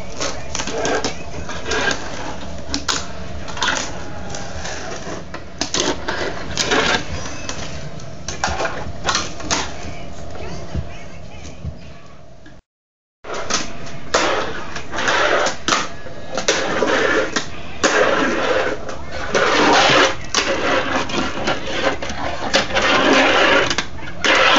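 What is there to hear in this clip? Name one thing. A fingerboard clicks and snaps against cardboard ramps.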